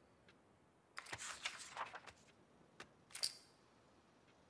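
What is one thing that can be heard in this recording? A paper page rustles as it turns over.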